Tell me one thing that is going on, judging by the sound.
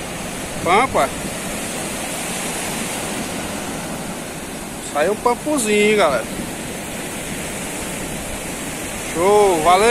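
Waves wash steadily onto the shore.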